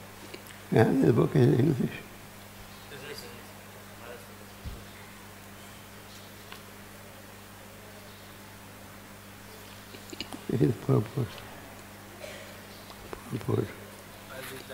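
An elderly man speaks slowly into a microphone, with long pauses.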